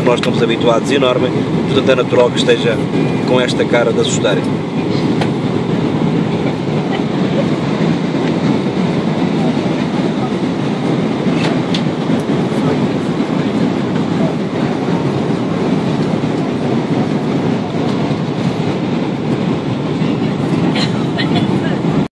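A jet engine roars steadily in an airplane cabin.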